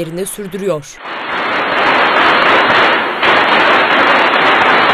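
A large crowd roars and cheers in an echoing hall.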